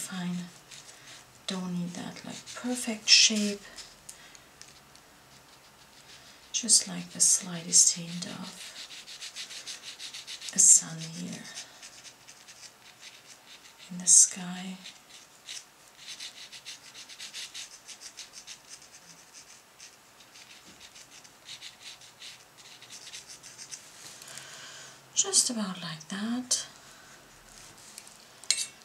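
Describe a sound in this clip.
A flat brush swishes across wet watercolor paper.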